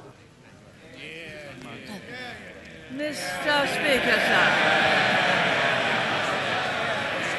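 A large crowd murmurs and then roars and cheers.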